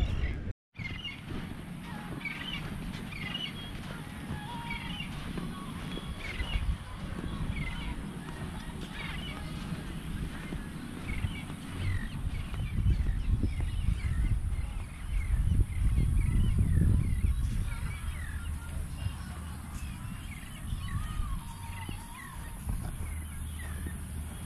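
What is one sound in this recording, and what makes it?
Footsteps crunch on sand.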